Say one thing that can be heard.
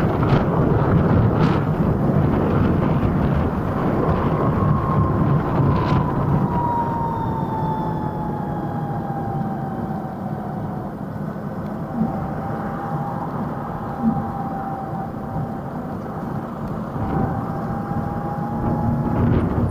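Wind rushes past loudly while riding.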